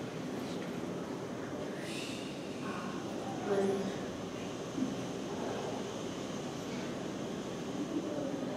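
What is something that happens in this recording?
A crowd of women and children murmurs and chatters softly in an echoing room.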